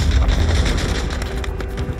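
Flames crackle and burn.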